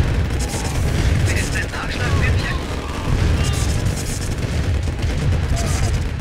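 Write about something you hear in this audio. Tank cannons fire and shells explode in a steady battle.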